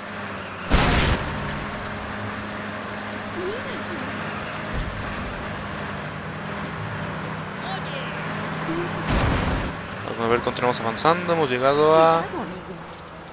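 A small car engine hums steadily as the car drives along.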